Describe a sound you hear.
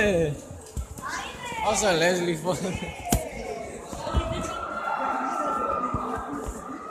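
A crowd of children chatters in the background.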